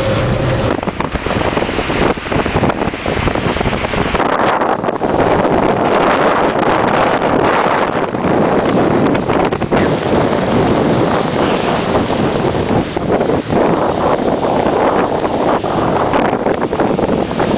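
Strong wind roars and buffets the microphone outdoors.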